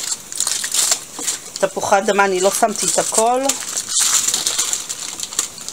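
A spoon scrapes and stirs wet food in a foil pan.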